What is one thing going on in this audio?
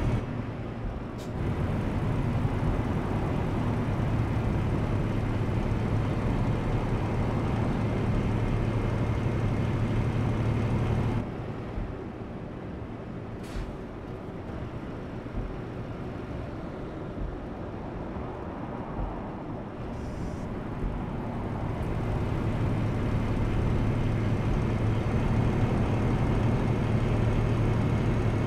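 A diesel truck engine drones while cruising on a highway.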